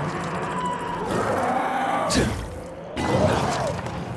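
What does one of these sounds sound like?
A bowstring twangs as an arrow is released.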